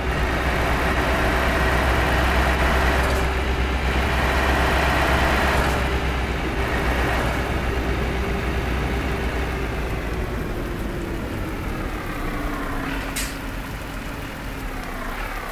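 A truck engine hums steadily and slowly drops in pitch as the truck slows down.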